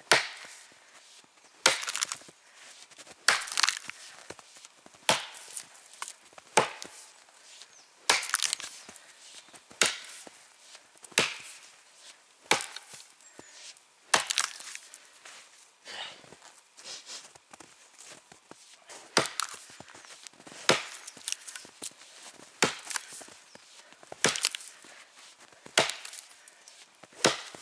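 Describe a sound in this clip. An axe chops into a tree trunk with sharp, regular blows.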